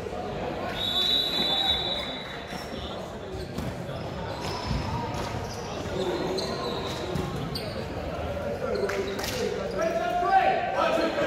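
Young people chatter and call out throughout a large echoing gym.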